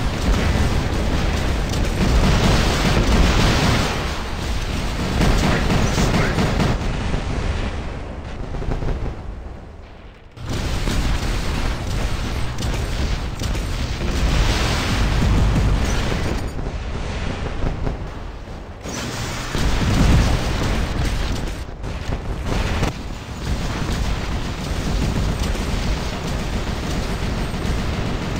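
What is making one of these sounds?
Heavy guns fire in rapid bursts with loud explosions.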